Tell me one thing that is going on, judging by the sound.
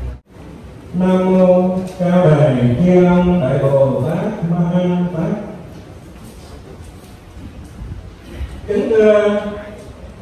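An elderly man chants slowly through a microphone and loudspeakers.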